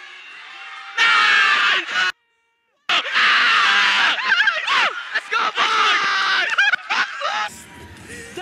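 Several young men shout and cheer loudly.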